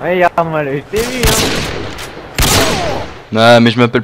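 A rifle shot rings out sharply.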